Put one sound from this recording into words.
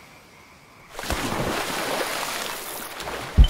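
Water splashes loudly as someone plunges in.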